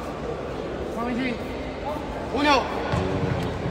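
Young men shout across the court.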